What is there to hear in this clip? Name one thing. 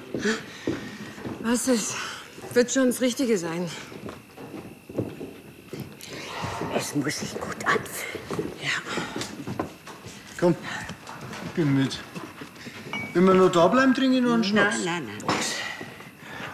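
A young woman speaks softly and tenderly, close by.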